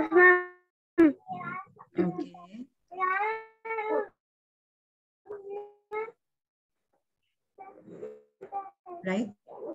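A young boy talks animatedly, close by.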